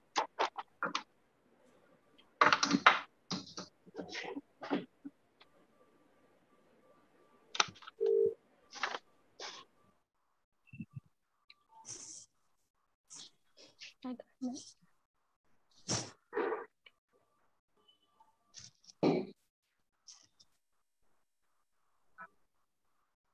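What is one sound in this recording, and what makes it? A woman speaks calmly over an online call, in broken bursts.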